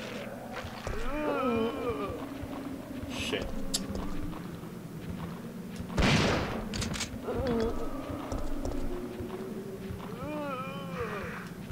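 Zombies groan and moan close by.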